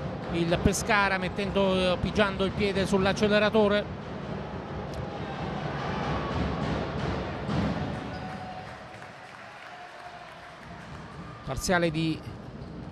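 A crowd murmurs in a large echoing hall.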